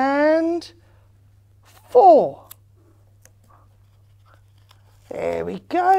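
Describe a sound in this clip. A middle-aged woman speaks with animation, close by, pausing between phrases.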